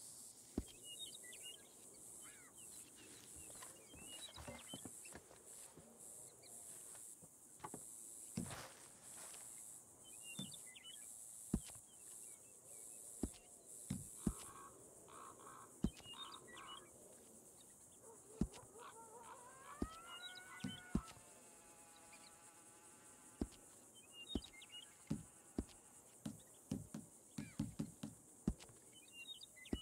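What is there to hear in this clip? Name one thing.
Short menu clicks tick now and then as options are selected.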